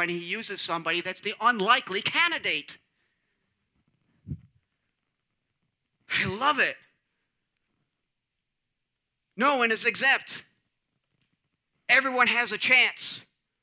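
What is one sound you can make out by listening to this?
A man speaks with animation through a microphone, pausing between phrases.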